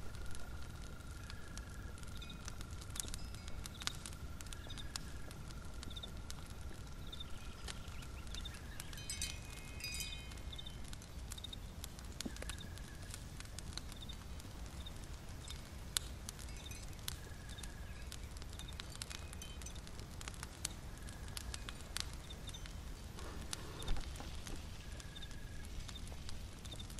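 A small fire crackles softly.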